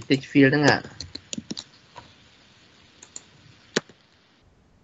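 Keys click as someone types on a keyboard.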